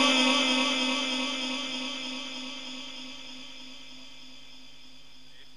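An elderly man holds a long sung note through a microphone, and it slowly fades away in echo.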